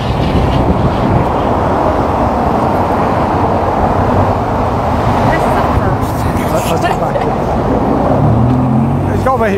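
Heavy traffic roars past steadily on a highway nearby.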